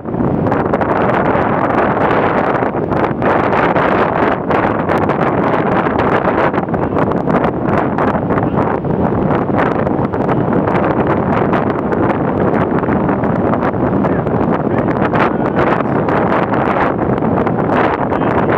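Waves break and wash onto a shore nearby.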